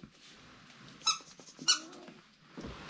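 A rubber toy squeaks.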